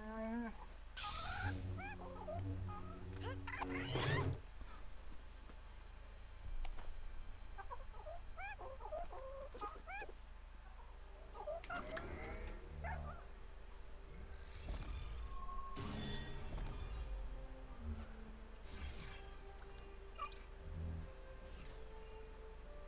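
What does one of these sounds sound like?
Lightsabers hum and clash with crackling sparks.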